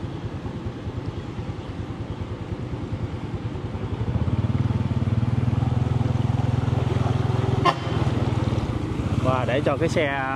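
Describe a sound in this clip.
A bus engine rumbles as the bus drives closer through deep water.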